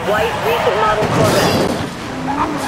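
A car crashes through a metal fence with a loud clatter.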